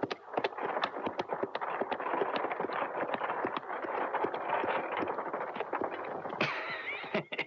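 Carriage wheels creak and rattle.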